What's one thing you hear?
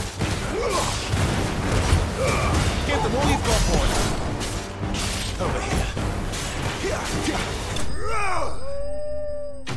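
Blades clash in a fierce battle.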